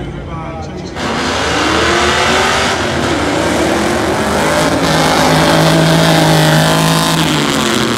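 A car engine roars loudly as the car accelerates away.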